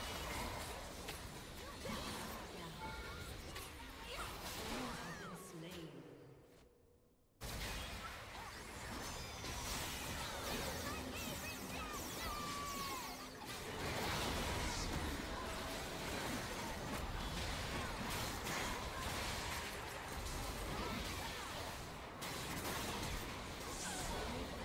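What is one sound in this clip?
Game weapons clash and strike with sharp hits.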